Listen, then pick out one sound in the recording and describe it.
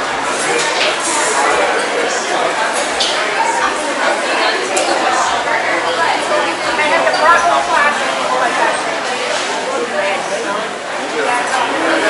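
A crowd of men and women chatters nearby and all around in a busy echoing hall.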